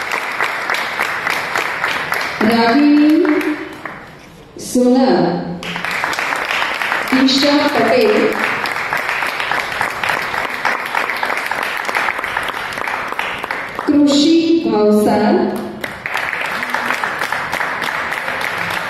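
A crowd claps steadily.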